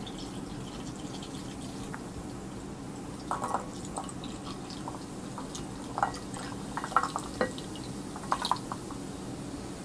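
Milky liquid pours from a bottle and splashes into a bowl.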